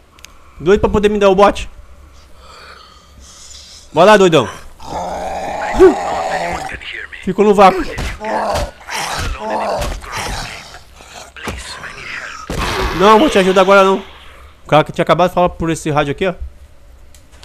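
A man growls and groans hoarsely nearby.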